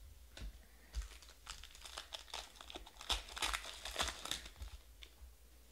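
Foil wrapping crinkles and tears as a card pack is ripped open.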